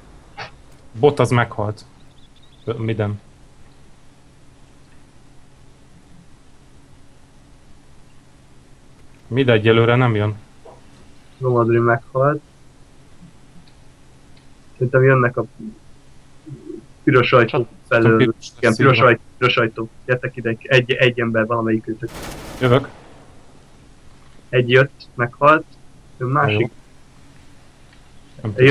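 A young man talks calmly and close to a microphone, in short bursts.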